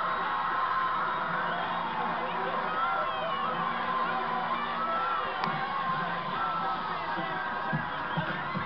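A crowd cheers and screams loudly, heard through a television speaker.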